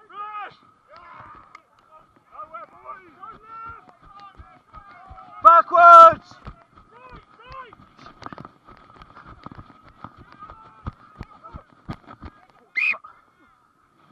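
Men shout loudly close by outdoors.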